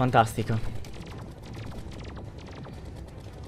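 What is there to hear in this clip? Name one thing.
A video game gun fires in a rapid rattle.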